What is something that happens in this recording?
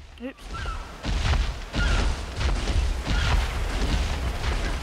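Heavy footsteps thud quickly as large creatures run on sand.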